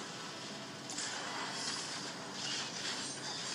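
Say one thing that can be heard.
Fantasy figures clash, with spells whooshing and crackling.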